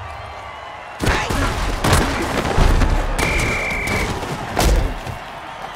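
Armoured players crash together in heavy thuds.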